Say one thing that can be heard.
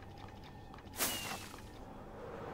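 A firework launches with a sharp whoosh.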